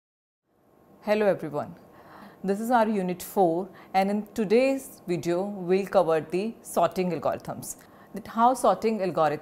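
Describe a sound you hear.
A young woman speaks calmly and clearly into a microphone, as in a lecture.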